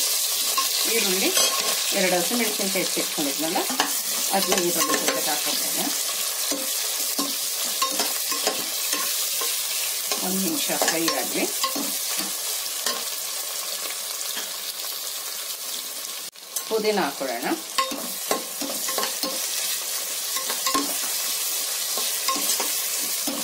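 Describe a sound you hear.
A metal spatula scrapes and clanks against a pot.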